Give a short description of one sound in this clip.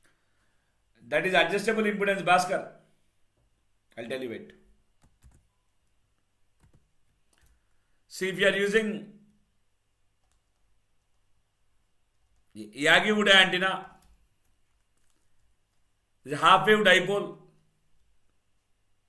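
A man speaks calmly into a close microphone in short bursts with pauses.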